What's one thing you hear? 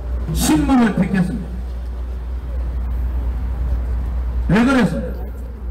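A man speaks loudly through a microphone and loudspeakers outdoors.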